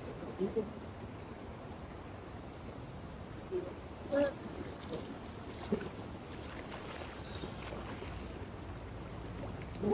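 A net swishes through shallow water.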